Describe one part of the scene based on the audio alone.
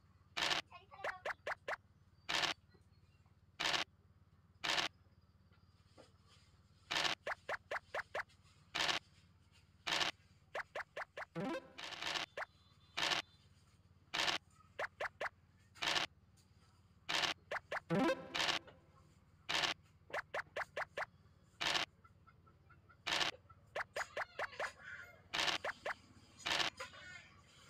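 Game dice rattle as they roll, again and again.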